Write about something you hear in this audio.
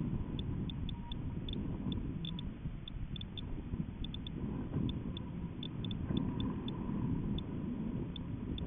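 Wind rumbles and buffets against the microphone.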